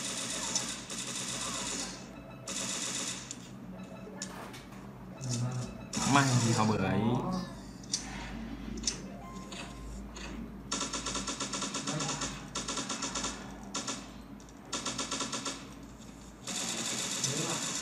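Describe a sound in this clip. Rapid gunfire rattles from a game.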